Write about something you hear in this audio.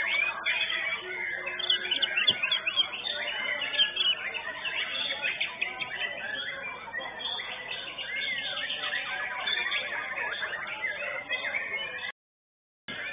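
Many songbirds chirp and trill loudly all around.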